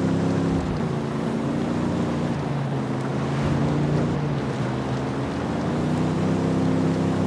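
Tyres roll over a dirt road.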